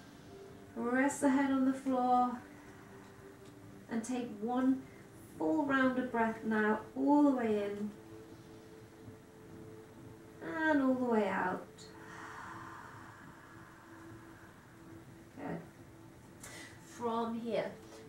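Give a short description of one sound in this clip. A woman speaks calmly and slowly close to a microphone.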